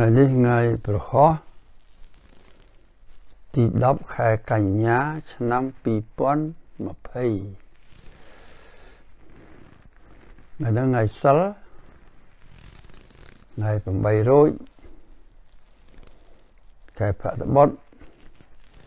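An elderly man speaks slowly and calmly close to a microphone, with long pauses.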